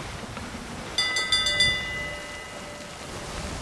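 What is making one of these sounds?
A ship's bell rings and rings on.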